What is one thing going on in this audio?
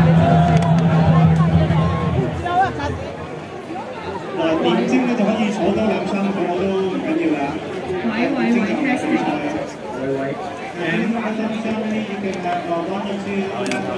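A crowd of people chatter all around, close by, outdoors.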